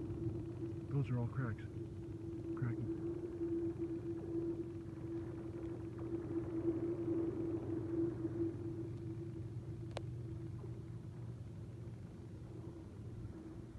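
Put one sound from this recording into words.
Skate blades glide and hiss steadily across thin ice.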